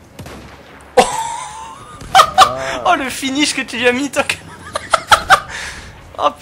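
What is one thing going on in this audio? Gunshots crack and echo.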